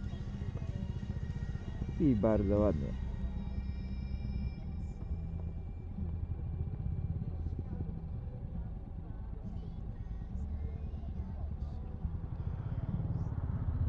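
A motorcycle engine rumbles steadily at idle nearby.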